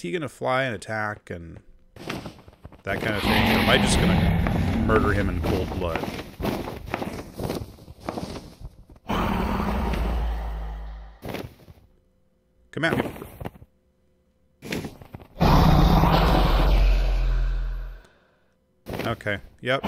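A dragon roars with a deep, rumbling growl.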